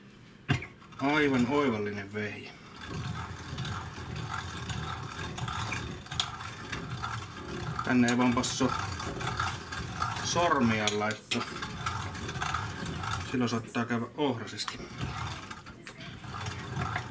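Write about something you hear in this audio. A hand-cranked meat grinder churns and squelches as it grinds meat.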